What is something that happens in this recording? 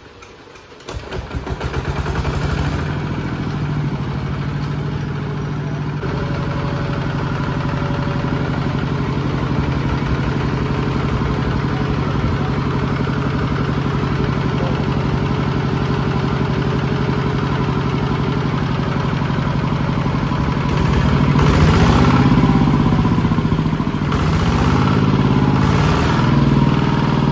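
A diesel engine starts and runs with a steady, loud chugging.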